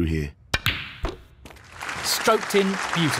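Snooker balls knock together.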